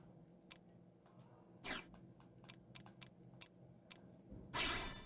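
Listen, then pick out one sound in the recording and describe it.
Short electronic menu clicks tick several times.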